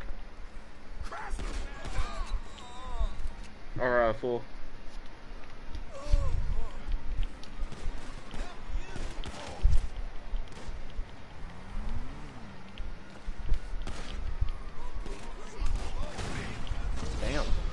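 Gunshots crack in sharp, scattered bursts.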